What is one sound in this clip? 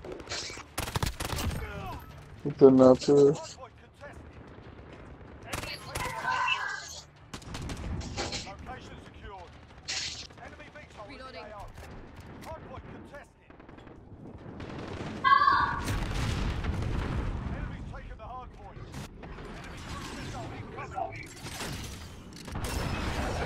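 Gunshots fire in short, sharp bursts.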